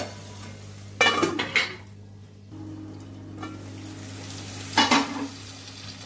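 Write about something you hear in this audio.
A metal lid clanks onto a pan and is lifted off again.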